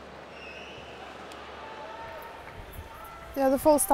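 Water splashes as a swimmer strokes through a pool.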